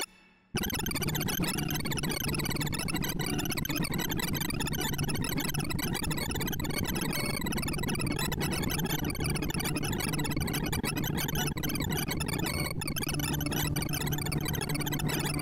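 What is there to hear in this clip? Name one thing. Rapid electronic beeps chatter nonstop at quickly changing pitches.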